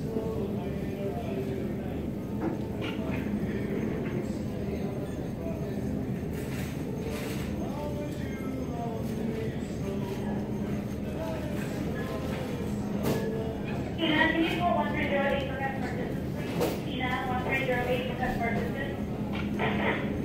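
A crowd murmurs at a distance in a large hall.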